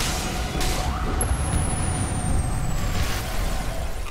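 A fiery explosion booms.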